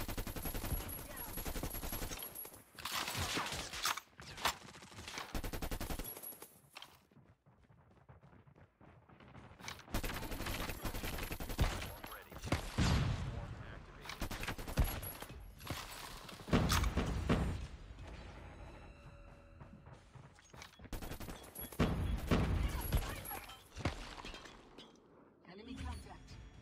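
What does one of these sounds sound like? Gunfire rattles in rapid bursts from a game.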